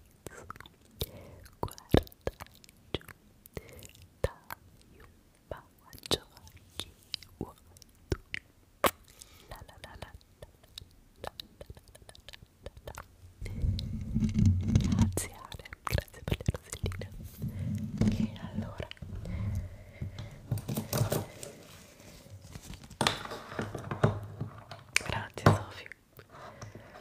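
A young woman whispers softly and closely into a microphone.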